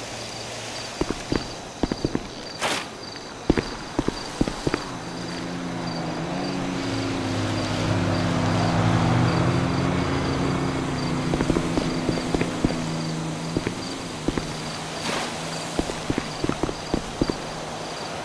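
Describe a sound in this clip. Footsteps tap on hard pavement.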